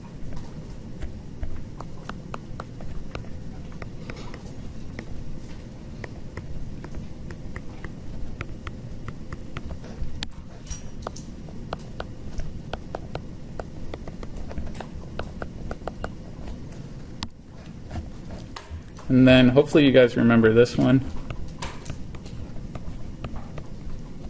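A stylus taps and scratches on a tablet.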